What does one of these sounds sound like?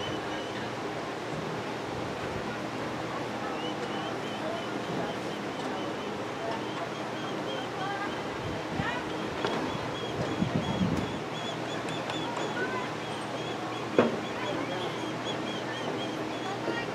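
Young women shout to each other across an open field outdoors.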